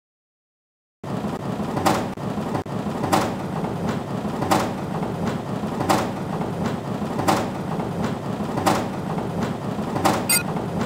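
Upbeat video game music plays with a steady beat.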